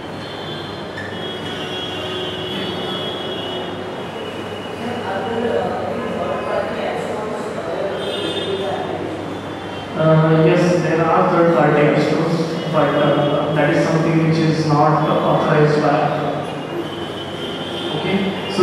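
A man speaks calmly into a microphone over loudspeakers in an echoing room.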